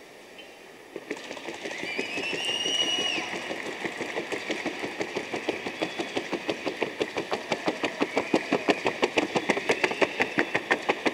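A horse's hooves clatter rapidly and evenly on a hollow wooden walkway.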